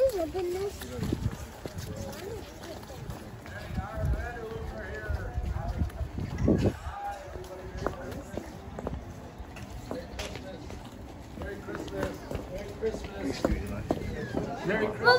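Footsteps run across grass and pavement.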